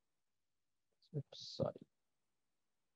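A young man speaks briefly and quietly into a microphone.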